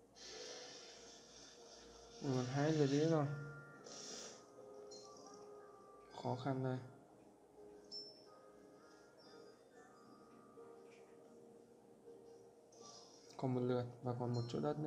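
A puzzle game plays soft chiming tones as pieces match.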